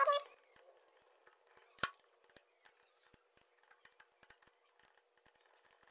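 A screwdriver turns a small screw with faint clicks.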